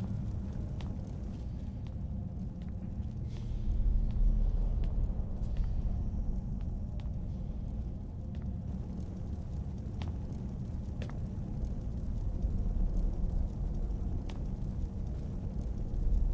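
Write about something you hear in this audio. Footsteps thud on stone floors.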